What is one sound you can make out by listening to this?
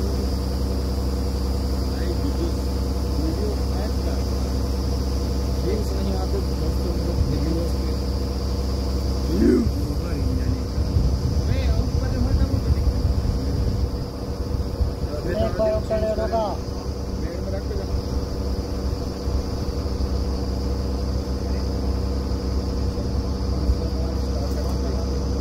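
A drilling rig's diesel engine drones loudly and steadily outdoors.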